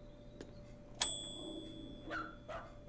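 A desk bell rings once with a clear ring.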